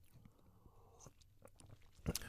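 A man sips a drink quietly.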